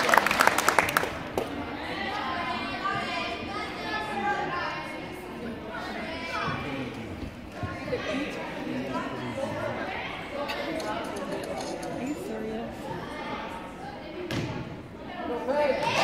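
Young women chatter and talk nearby in an echoing hall.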